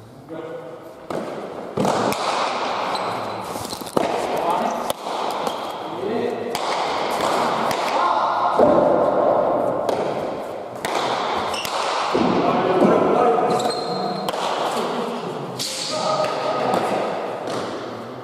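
A ball smacks hard against walls and bare hands, echoing through a large hall.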